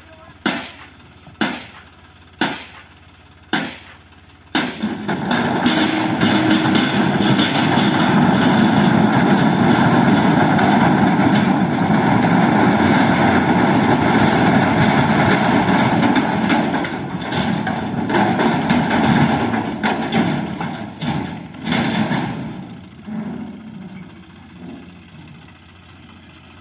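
A tractor engine runs nearby.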